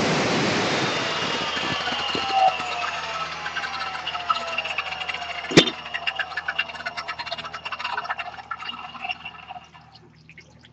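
An angle grinder's motor winds down slowly with a fading whine.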